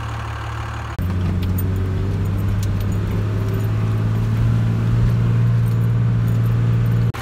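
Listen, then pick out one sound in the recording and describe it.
Tyres crunch and rattle over a rough dirt road.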